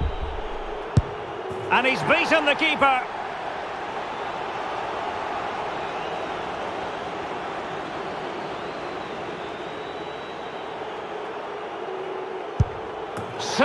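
A football is struck hard with a thud.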